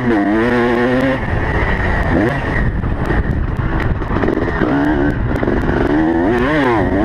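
A dirt bike engine revs hard up and down close by.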